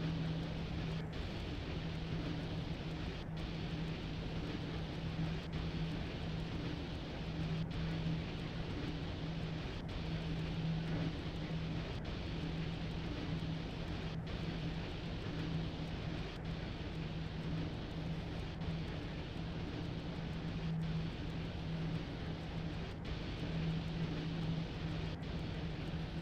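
Train wheels click rhythmically over rail joints.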